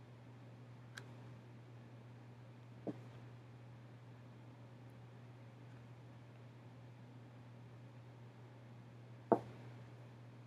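A phone knocks faintly as it is handled close by.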